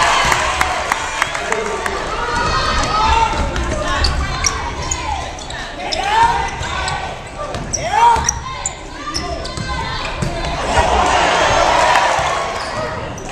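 A crowd in the stands cheers and chatters in an echoing gym.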